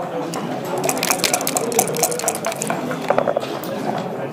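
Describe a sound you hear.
Dice rattle in a cup.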